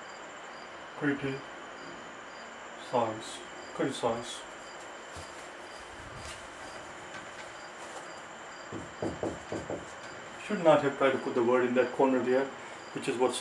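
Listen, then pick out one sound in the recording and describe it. A middle-aged man speaks calmly, as if teaching.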